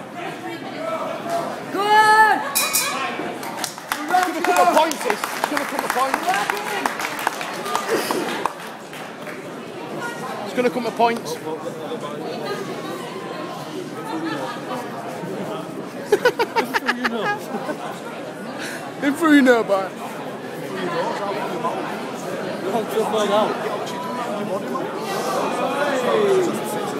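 A crowd of men chatter and shout loudly in an echoing hall.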